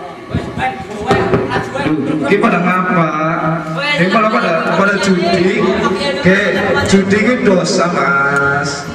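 A man sings through a microphone and loudspeaker.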